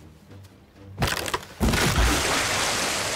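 Clods of dirt thud and scatter.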